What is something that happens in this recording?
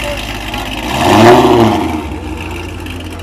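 A car engine revs loudly once.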